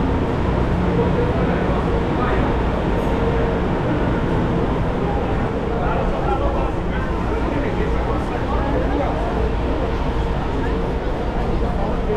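A crowd of passengers chatters in an echoing space.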